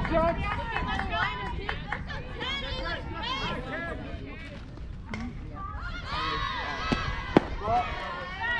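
Young girls shout and cheer outdoors at a distance.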